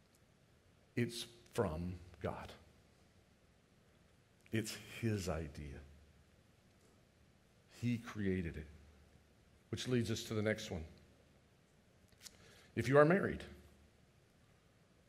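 An older man speaks slowly and deliberately through a microphone, pausing between phrases.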